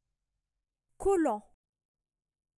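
A woman's recorded voice says a single word clearly through a loudspeaker.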